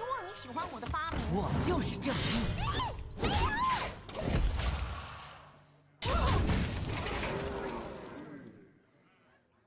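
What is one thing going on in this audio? Magical sound effects whoosh and clash as game cards strike.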